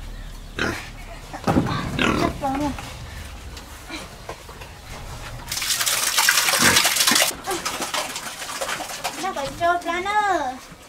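Pigs grunt and squeal close by.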